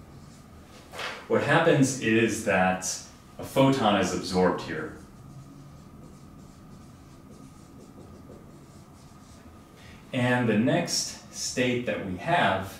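A man lectures calmly and clearly into a nearby microphone.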